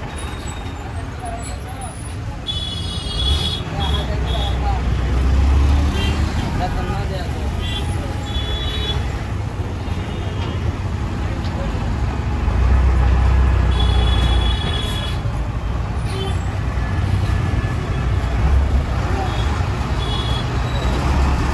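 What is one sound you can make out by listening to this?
A bus engine rumbles and idles close by.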